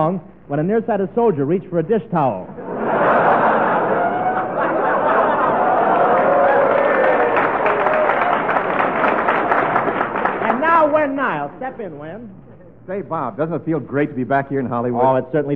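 A man speaks with animation into a microphone, heard through an old, muffled radio broadcast.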